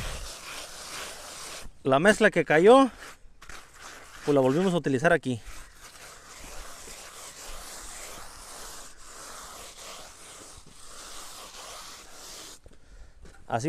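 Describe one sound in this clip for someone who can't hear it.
A hand float scrapes and rubs across wet concrete.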